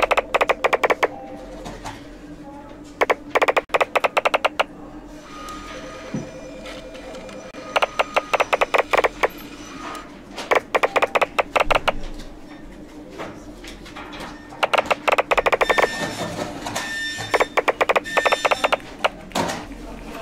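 Rapid, quick-fire ticking clicks come in bursts as papers pile up.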